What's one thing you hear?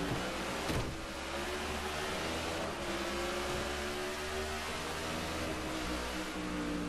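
Race car engines roar loudly at high speed.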